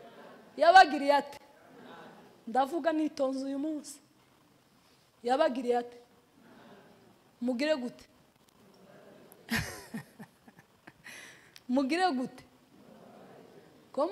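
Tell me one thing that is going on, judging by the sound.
A woman speaks animatedly into a microphone, with pauses between phrases.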